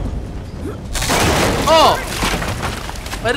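Wooden planks crash and splinter loudly.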